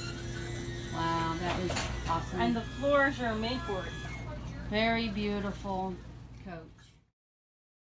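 A woman speaks nearby in a casual voice.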